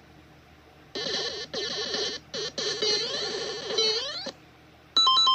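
Bright chiptune game music plays through a small speaker.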